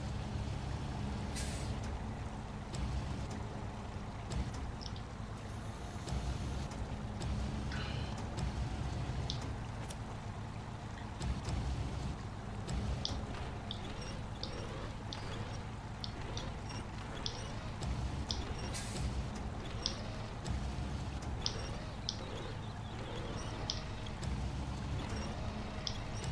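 A hydraulic crane whines as it moves a load.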